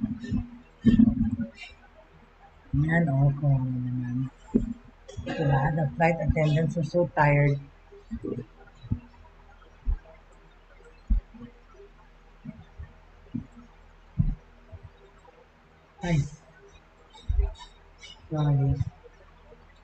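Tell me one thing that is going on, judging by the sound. A middle-aged woman speaks calmly through a computer microphone in an online call, with pauses.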